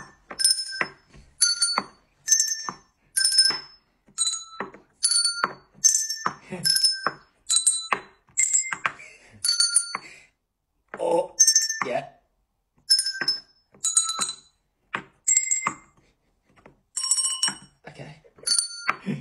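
Small desk bells ring again and again with bright, short chimes.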